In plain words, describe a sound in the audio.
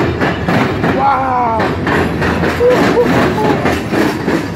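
Train wheels squeal on the rails.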